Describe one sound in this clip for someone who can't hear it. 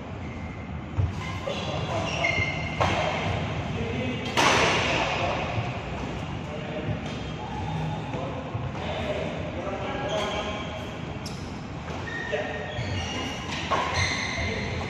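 A shuttlecock is struck sharply with a racket in a large echoing hall.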